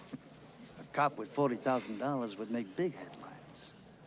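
A middle-aged man speaks calmly and closely.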